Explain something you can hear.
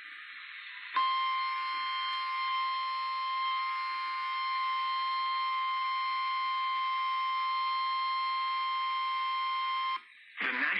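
A radio plays a loud, steady buzzing tone.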